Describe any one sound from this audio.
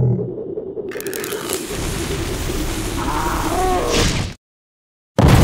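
A match flares and hisses into flame.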